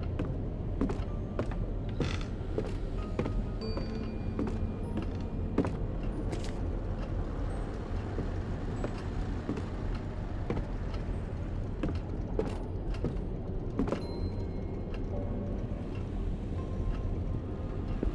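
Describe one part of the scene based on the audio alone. Footsteps thud slowly on a hard wooden floor.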